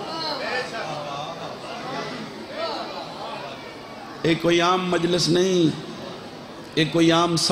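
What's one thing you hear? A man speaks forcefully through a microphone and loudspeakers, in a reverberant space.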